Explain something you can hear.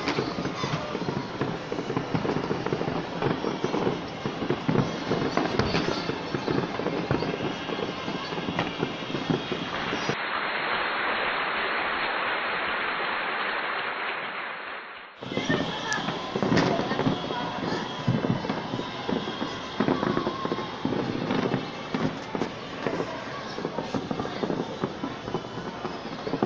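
Fireworks crackle and pop outdoors in the distance.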